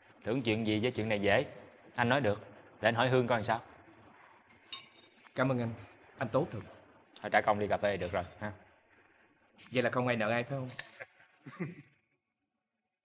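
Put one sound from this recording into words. Two men talk calmly at close range.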